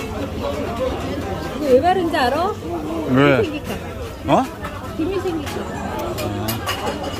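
Adult men and women chat lively nearby.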